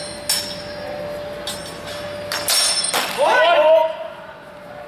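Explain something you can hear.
Practice swords clack together as fighters spar.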